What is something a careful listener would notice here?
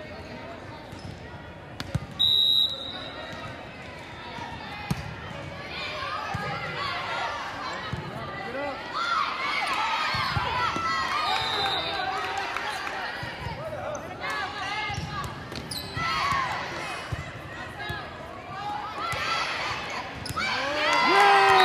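Players' shoes squeak on the hard floor.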